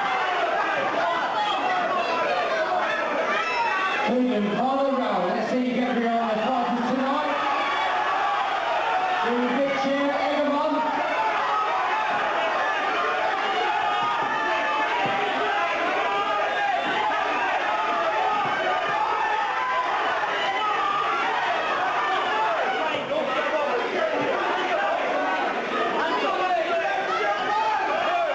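An indoor crowd shouts and cheers.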